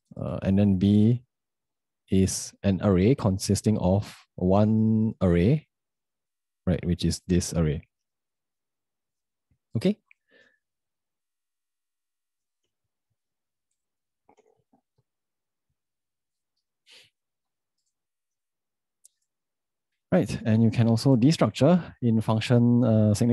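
A young man speaks calmly and closely into a microphone, in bursts with pauses.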